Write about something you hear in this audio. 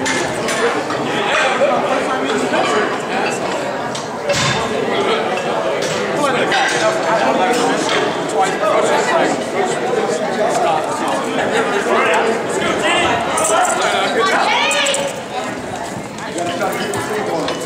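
A crowd of men and women chatter nearby in a large echoing hall.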